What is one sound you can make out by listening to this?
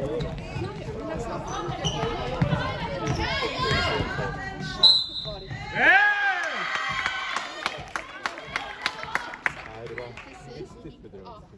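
Young women shout and call out across an echoing hall.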